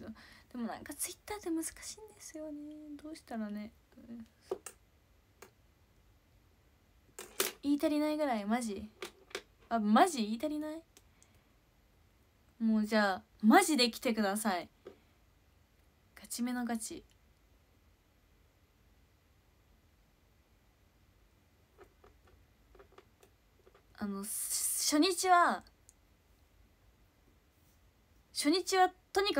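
A young woman talks close up in short bursts, with pauses between.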